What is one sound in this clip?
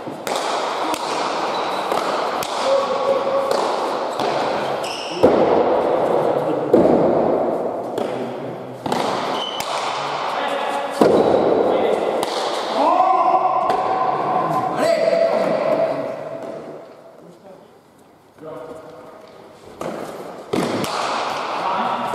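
A hard ball smacks against a wall and echoes through a large hall.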